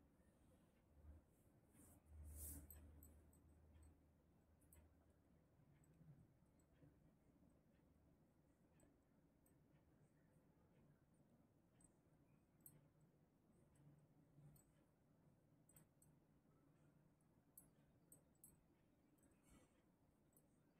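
Knitting needles tick and click softly against each other.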